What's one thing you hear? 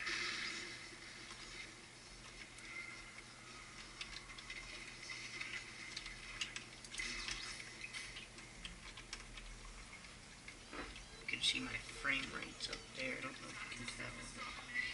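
Video game sound effects clatter and pop through a small television speaker.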